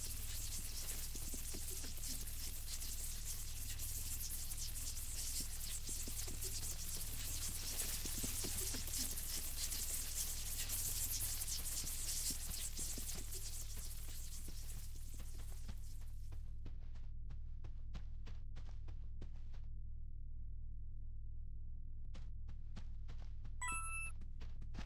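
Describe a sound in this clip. Footsteps patter on soft sand.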